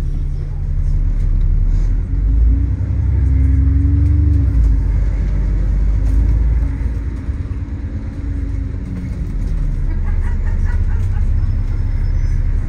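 Cars drive past along a busy street.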